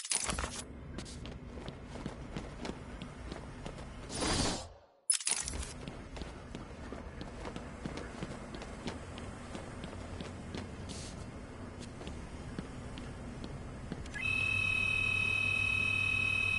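Footsteps tap on a hard floor in a quiet, echoing space.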